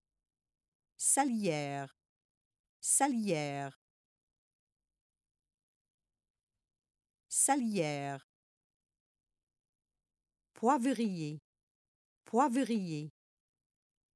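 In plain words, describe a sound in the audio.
A young woman says short single words, one at a time, in a calm, clear voice.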